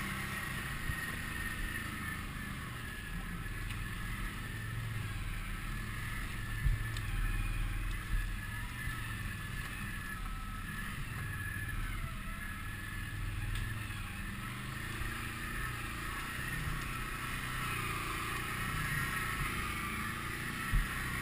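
Tyres crunch over dry leaves and rough ground.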